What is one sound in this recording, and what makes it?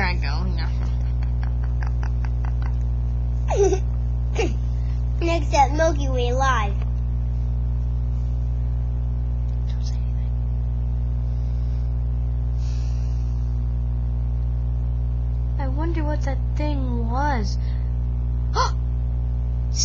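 A young person talks playfully, close to a microphone.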